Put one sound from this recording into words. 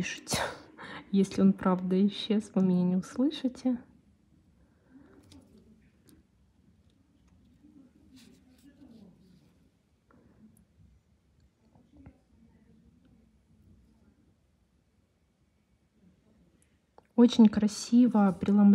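A thin metal tool taps and scrapes lightly on a hard nail.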